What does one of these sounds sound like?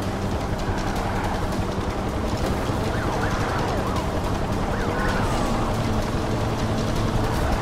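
Tyres rush over the road.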